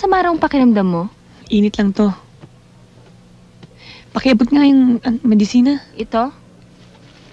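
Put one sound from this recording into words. A young woman speaks loudly and with emotion, close by.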